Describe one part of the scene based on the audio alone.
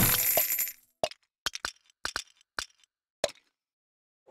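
Game pieces pop in quick, short clicks.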